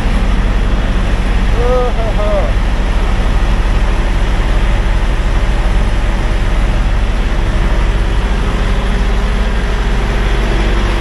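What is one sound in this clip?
Truck engines idle nearby with a steady low rumble.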